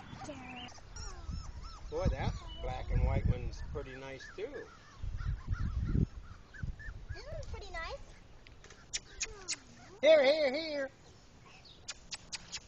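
Puppies whine and yelp in high, rising and falling cries.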